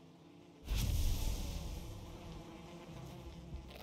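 A deep magical whoosh bursts out and slowly fades.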